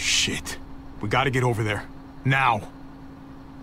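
A man speaks tensely in a low voice.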